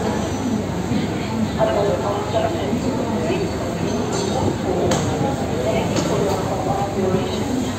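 Adults chat nearby in a crowd.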